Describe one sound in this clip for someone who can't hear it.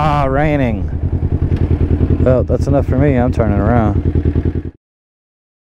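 A motorcycle engine hums and rises and falls in pitch as it rides.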